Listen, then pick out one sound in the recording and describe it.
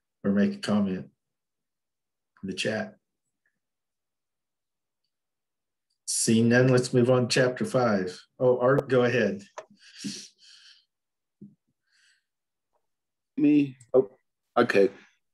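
An elderly man speaks calmly over an online call, in short phrases with pauses.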